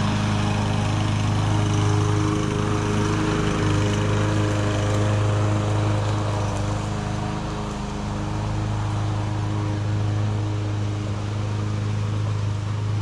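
A lawn mower engine drones steadily in the distance.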